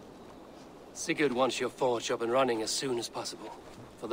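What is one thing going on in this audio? A second man speaks calmly, close by.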